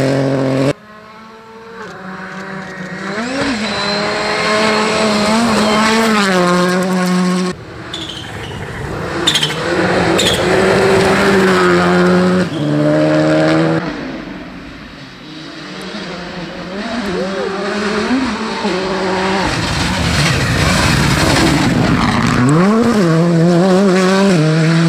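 Rally car engines roar and rev hard as they race past.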